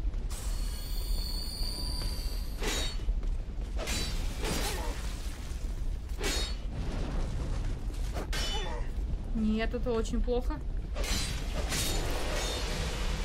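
Swords clang and slash in a fight.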